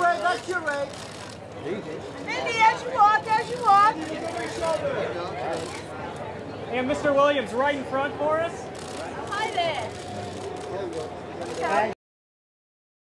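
Several adult men and women talk and call out with animation nearby.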